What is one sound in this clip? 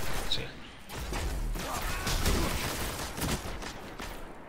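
A game weapon fires a loud, crackling energy blast.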